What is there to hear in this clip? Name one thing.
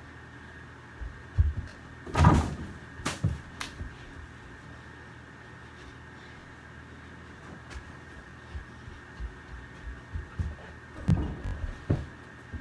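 Bare feet thud on a carpeted floor.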